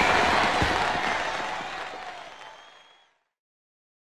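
Fireworks burst and crackle, then fade away.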